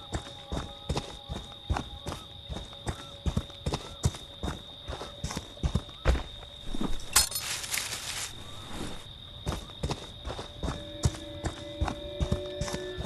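Heavy footsteps crunch steadily over dry leaves and dirt.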